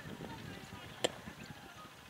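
A cricket bat knocks against the ground.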